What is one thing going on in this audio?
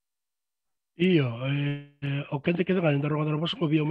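A man speaks calmly through a headset microphone over an online call.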